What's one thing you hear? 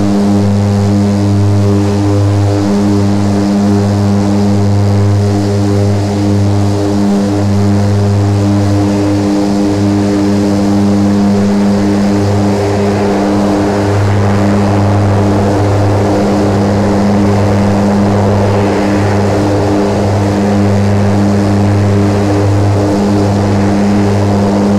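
Twin propeller engines drone steadily with a deep hum.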